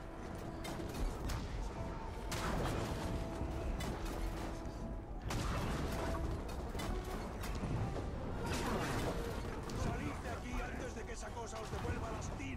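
Explosions boom and rumble in a battle game.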